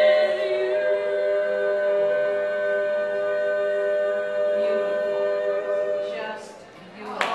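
A group of women sing a close harmony chord together, unaccompanied.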